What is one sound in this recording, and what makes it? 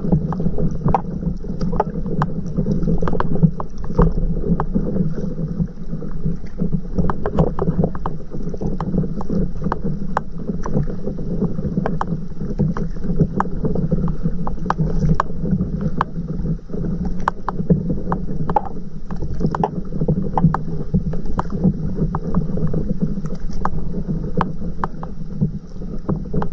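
Water laps and splashes against a slowly moving boat.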